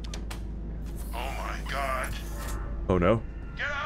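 A heavy metal door slides open with a hiss.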